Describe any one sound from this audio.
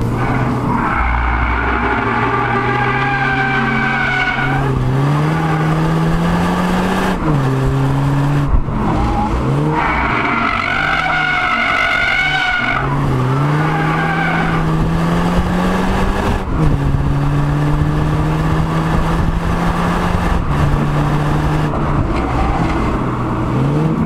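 A car engine revs up and down loudly as it accelerates and shifts gears.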